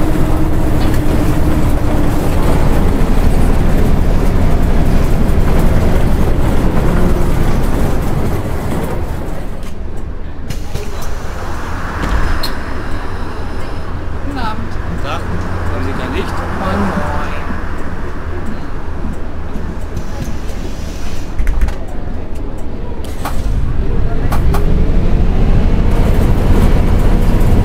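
A bus engine drones loudly as the bus drives along.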